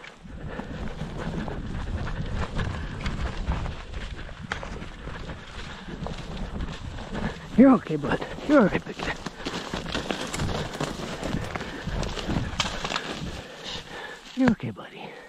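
Footsteps swish and crunch through tall dry grass.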